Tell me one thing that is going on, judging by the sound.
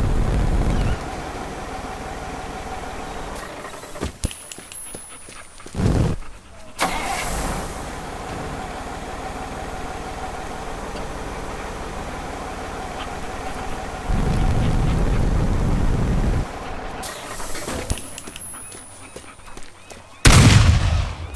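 A crane truck engine idles.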